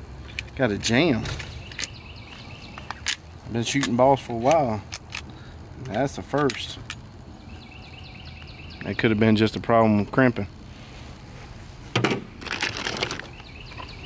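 Shotgun shells click as a man loads them into a shotgun.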